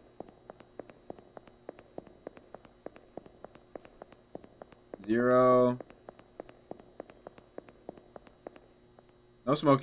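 Footsteps tap on a tiled floor.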